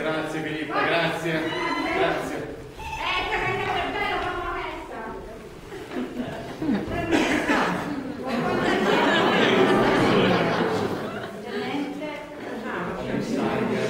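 A man speaks with animation, heard from a distance in a large echoing hall.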